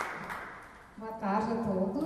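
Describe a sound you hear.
A woman speaks through a microphone.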